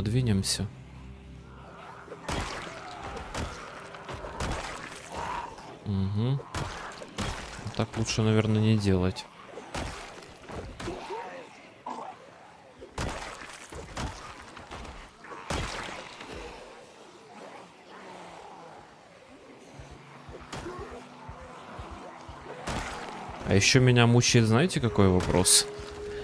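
Zombies groan and moan close by.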